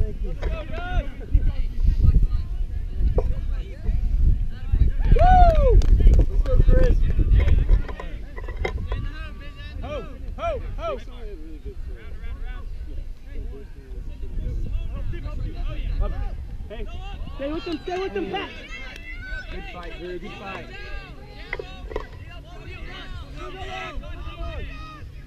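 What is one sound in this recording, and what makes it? Players shout and call out to each other across a field.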